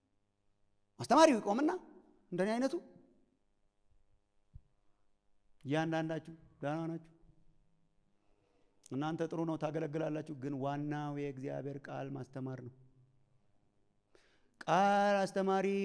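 A man preaches with animation through a microphone over loudspeakers, in bursts with pauses.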